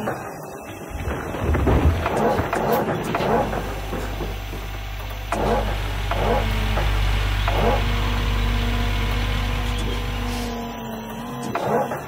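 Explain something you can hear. An excavator engine rumbles steadily.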